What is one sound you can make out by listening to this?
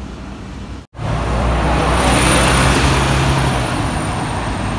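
A double-decker bus engine rumbles loudly close by.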